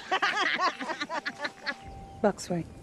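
Young women laugh together close by.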